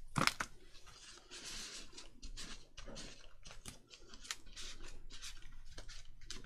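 Paper rustles and rubs under hands.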